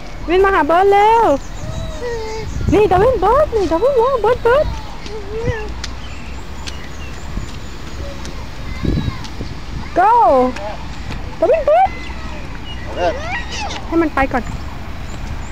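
A toddler squeals and babbles in short high bursts close by.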